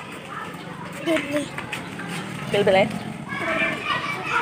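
A small child talks and squeals close by.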